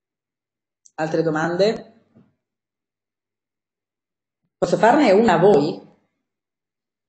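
A woman speaks calmly through a microphone on an online call, in short bursts.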